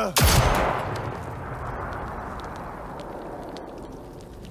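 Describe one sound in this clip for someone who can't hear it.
A gunshot bangs loudly and echoes away.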